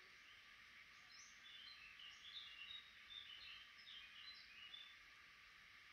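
Nestling birds chirp in high, thin peeps close by.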